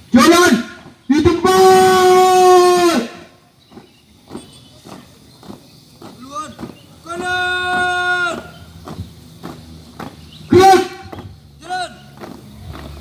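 A young man shouts drill commands loudly outdoors.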